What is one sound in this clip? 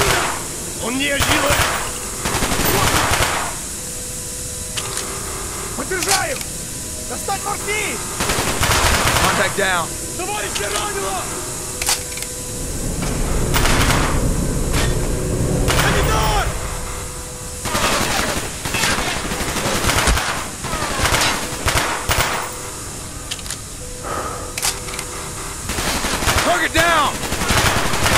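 Gunshots fire in short bursts, echoing in an enclosed space.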